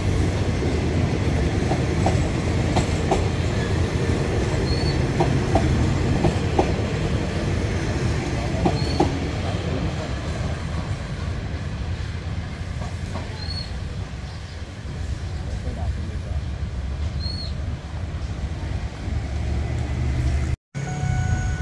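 A passenger train rumbles slowly along the tracks, its wheels clacking.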